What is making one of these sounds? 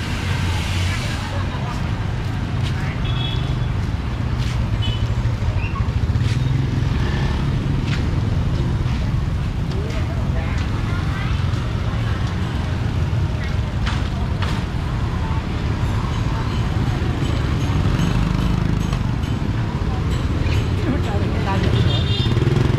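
Motorbike engines hum and putter past along a busy street.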